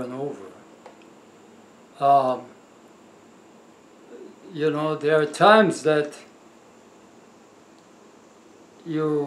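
An elderly man speaks calmly and slowly into a nearby microphone, with long pauses.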